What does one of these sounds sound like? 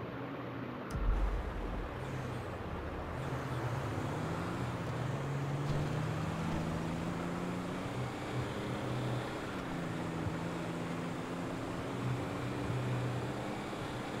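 A car engine hums and revs as the car drives along a road.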